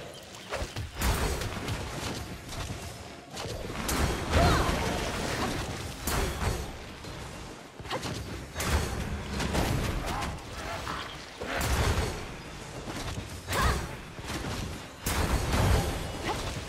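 Magic blasts and weapon strikes crash in repeated bursts.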